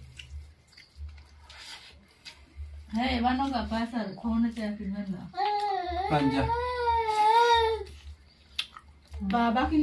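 Food crunches and smacks as a man chews.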